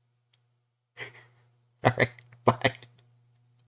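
A man laughs in short bursts close to a microphone.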